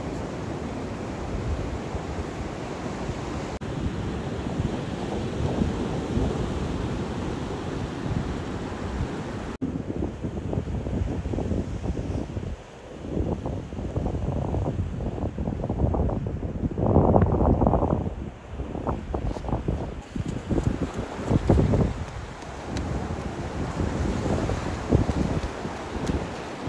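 Waves wash onto the beach in a steady roar.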